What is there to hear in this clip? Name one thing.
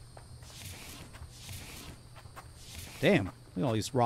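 Leaves rustle as footsteps push through dense plants.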